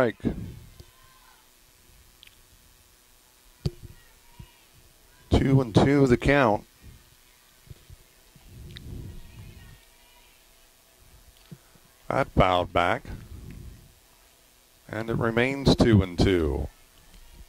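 A man shouts out a call loudly from a distance.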